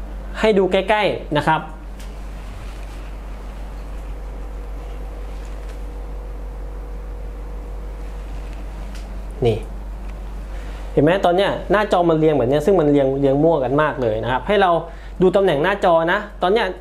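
A man speaks close by, explaining calmly.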